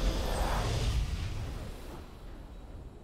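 A triumphant game fanfare booms and then fades away.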